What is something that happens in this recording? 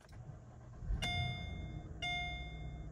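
A V8 car engine cranks and starts.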